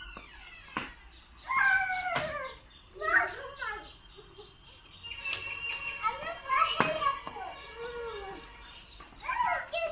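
Children shout and call out nearby outdoors.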